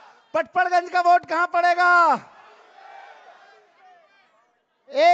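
A man shouts with energy into a microphone over loudspeakers.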